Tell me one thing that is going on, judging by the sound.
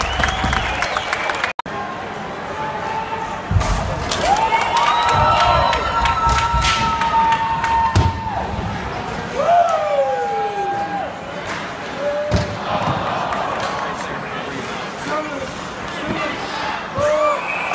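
A crowd murmurs and calls out in a large echoing arena.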